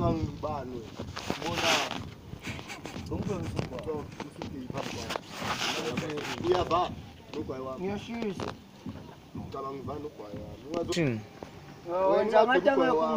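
A young man talks with animation close by, outdoors.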